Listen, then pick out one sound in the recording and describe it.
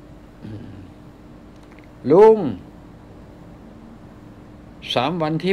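An elderly man speaks slowly in short bursts close to a microphone.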